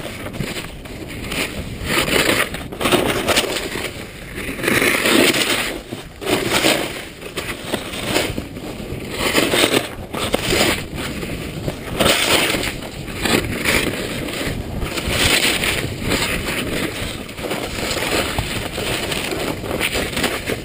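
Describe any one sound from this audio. Wind rushes past a fast-moving rider.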